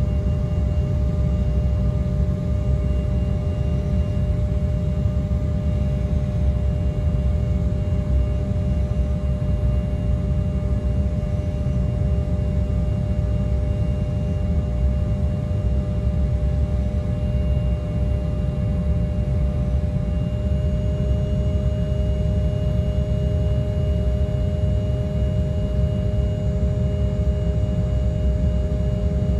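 Jet engines roar steadily with a low rumble and a humming whine.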